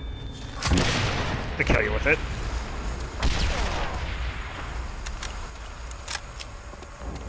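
Gunfire cracks and echoes outdoors.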